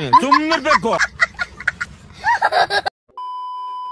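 A young child laughs loudly.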